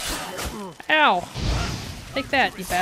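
A fiery blast bursts with a low boom.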